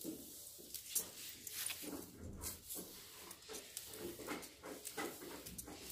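A broom sweeps across a hard floor with soft brushing strokes.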